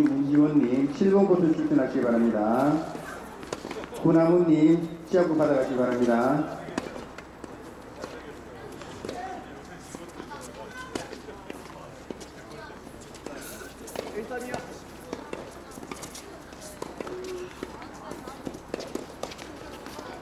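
A tennis racket strikes a ball with a sharp pop, several times.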